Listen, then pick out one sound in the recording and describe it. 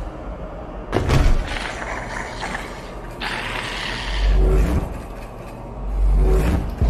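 A heavy metal gun clanks as it is lifted.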